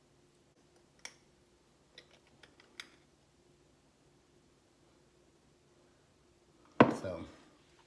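Small clicks and taps of jars and lids on a countertop.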